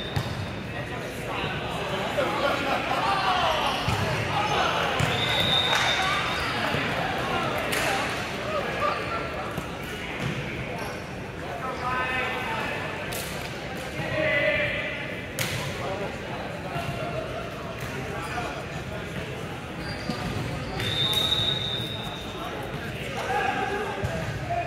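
Players call out and shout to each other in a large echoing hall.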